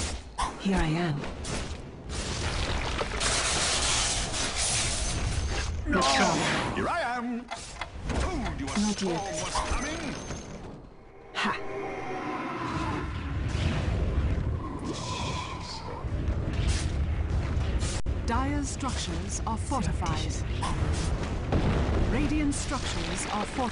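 Video game battle effects crackle and whoosh.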